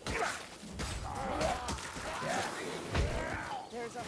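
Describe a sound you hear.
Blades hack and slash into flesh.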